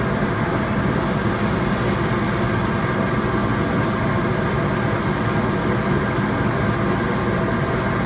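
A laser cutter hisses softly as it burns into wood.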